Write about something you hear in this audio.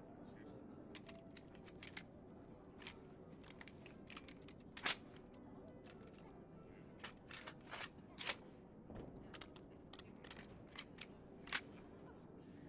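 Metal clicks and clacks as a rifle is handled and loaded.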